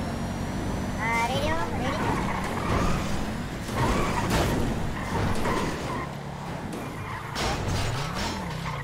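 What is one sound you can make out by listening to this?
Tyres screech as a car skids and drifts.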